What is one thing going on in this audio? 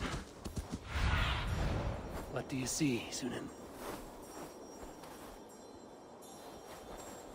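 A large bird flaps its wings.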